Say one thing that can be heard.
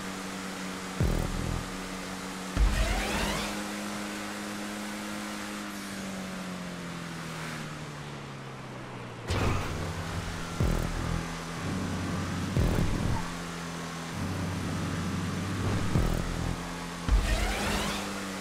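Tyres thump over kerbs and bumps.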